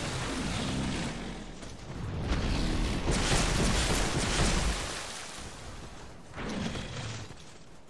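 A huge creature growls deeply.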